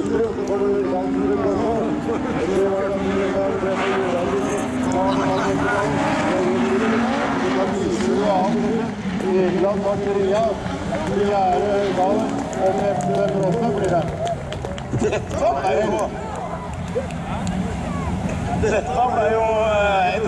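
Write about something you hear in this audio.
Racing car engines rev and roar, rising and falling in pitch.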